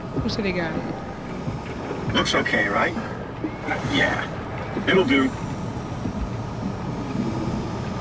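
A small submarine's motor hums as it moves through the water.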